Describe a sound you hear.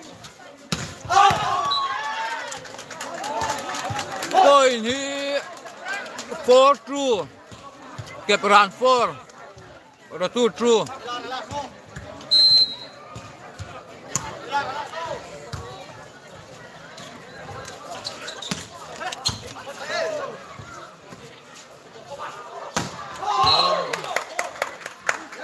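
Young men shout and call out loudly outdoors.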